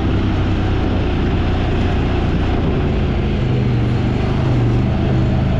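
An off-road vehicle engine drones steadily up close.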